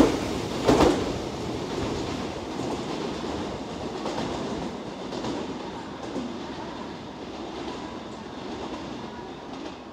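A train rumbles softly in the distance as it slowly approaches.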